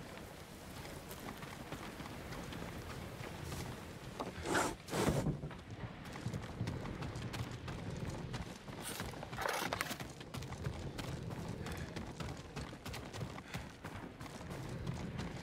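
Footsteps patter softly on wooden floors.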